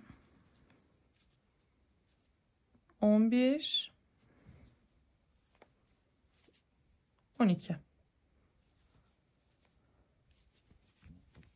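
A crochet hook pulls yarn through stitches with soft rustling and scratching.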